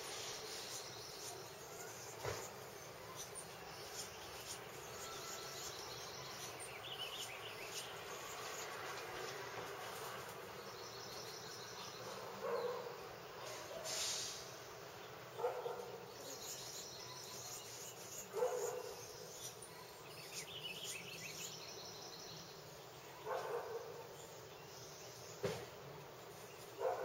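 Wind chimes tinkle softly in a light breeze.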